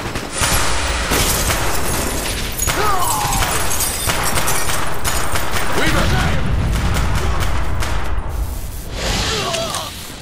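Rapid gunfire rattles loudly.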